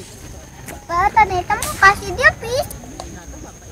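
A young girl speaks brightly close by.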